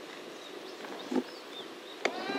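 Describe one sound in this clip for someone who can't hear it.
A baseball smacks into a leather mitt after a pitch.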